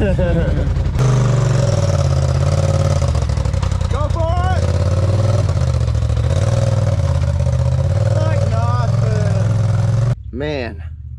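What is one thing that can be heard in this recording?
An off-road vehicle's engine roars and revs as it climbs over rocks.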